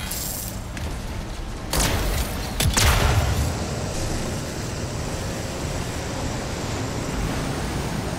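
Heavy thrusters roar as a suit flies.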